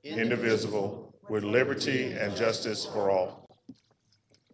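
A group of adults recite together in unison.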